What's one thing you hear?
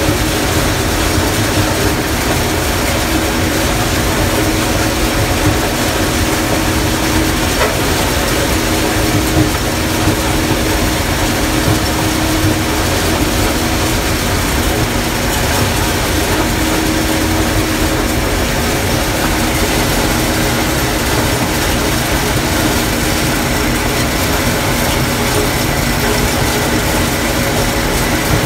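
Dry corn stalks rustle and crunch as they are cut.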